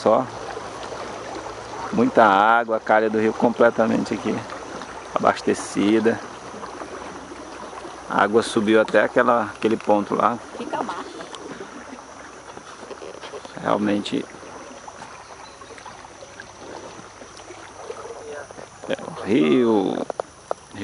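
Water swishes and laps along the side of a moving boat.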